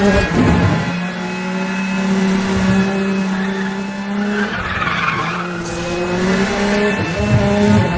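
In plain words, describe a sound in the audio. A sports car engine roars at high speed, its pitch dipping and rising as it shifts gears.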